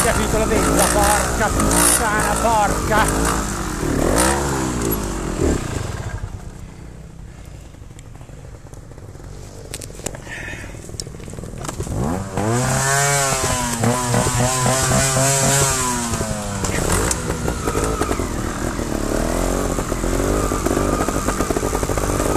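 A motorbike engine revs up and down close by.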